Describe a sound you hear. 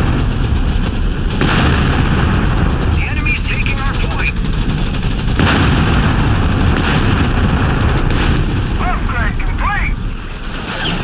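Tank engines rumble heavily.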